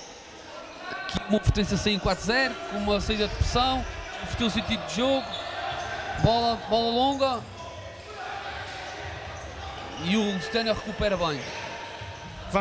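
A ball is kicked with sharp thuds in a large echoing hall.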